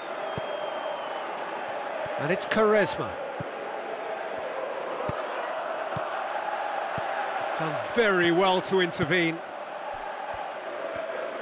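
A football is kicked with dull thuds now and then.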